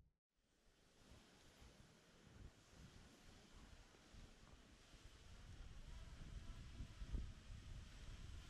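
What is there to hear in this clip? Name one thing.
Skis swish softly over snow.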